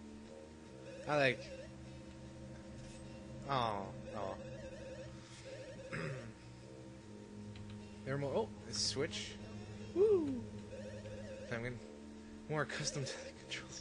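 Cheerful video game music plays steadily.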